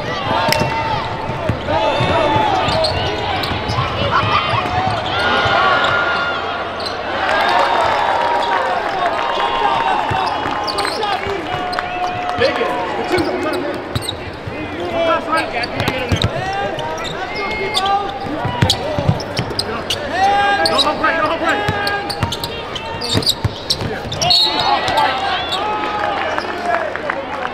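A crowd of spectators cheers and shouts throughout a large echoing arena.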